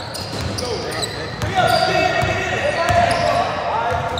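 A basketball bounces with hollow thuds.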